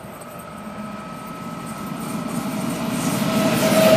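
Train wheels hum and squeal on the rails.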